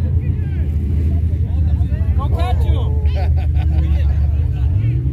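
Off-road buggy engines rumble and drone nearby.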